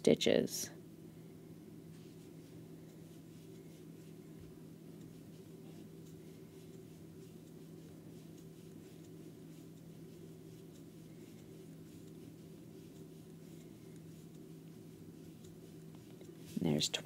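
A crochet hook softly rustles and scrapes through yarn.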